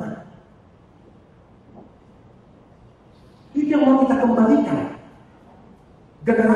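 A man speaks slowly and solemnly into a microphone in a large echoing hall.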